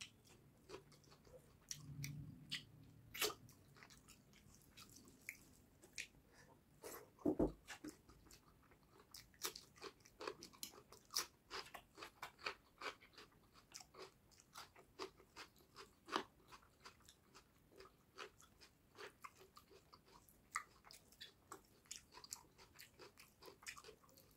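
Fingers squish and mix rice on a board.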